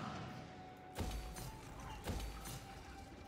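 Soft menu clicks sound from a strategy game.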